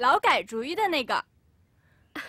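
A young woman speaks brightly and cheerfully.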